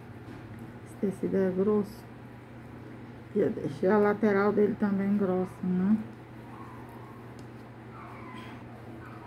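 Soft fabric rustles as it is handled.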